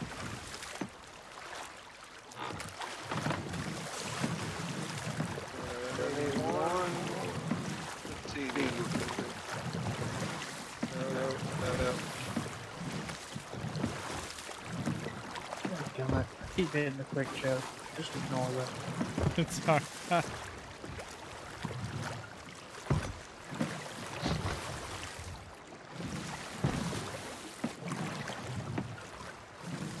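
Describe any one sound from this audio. Ocean waves wash and splash against a small boat.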